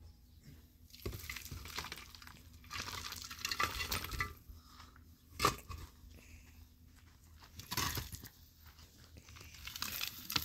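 Concrete blocks scrape and knock against each other as they are set down.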